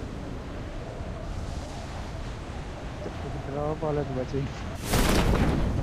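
Air rushes loudly past during a freefall.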